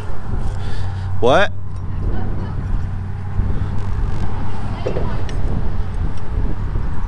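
Metal hooks clink together.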